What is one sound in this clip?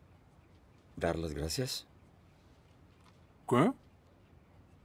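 A younger man answers in a low, hesitant voice.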